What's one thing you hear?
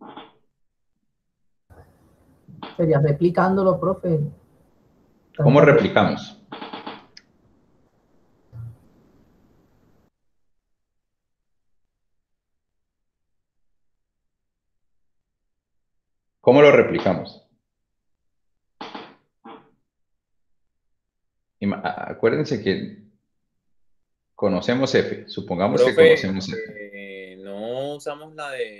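A young man speaks calmly over an online call, with pauses.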